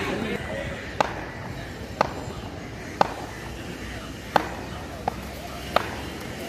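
A cricket bat taps sharply on the ground.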